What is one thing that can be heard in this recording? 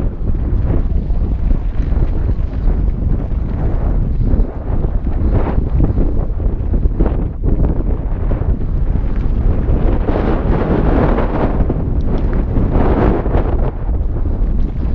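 Wind rushes loudly and steadily past, outdoors.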